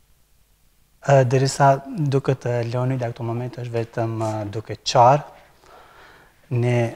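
A middle-aged man speaks calmly and warmly into a microphone.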